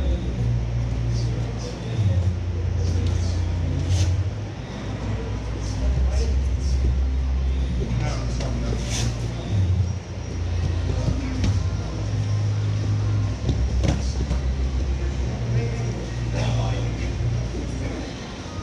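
Punches and kicks thud and smack against training pads in a large echoing hall.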